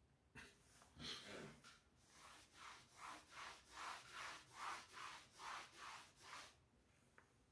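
A sponge rubs across a slate board in quick, even strokes.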